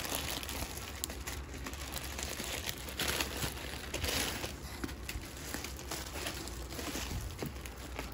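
Bubble wrap crackles as hands squeeze and turn it.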